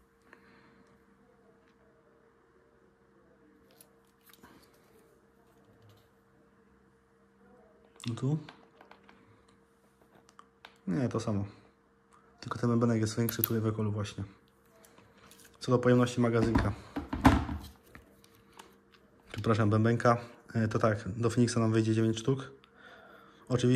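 Metal parts of a revolver click and rattle as they are handled.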